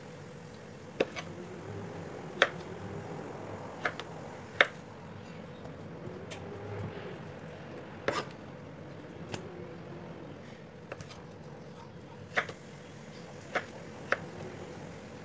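A knife chops sharply against a cutting board, now and then.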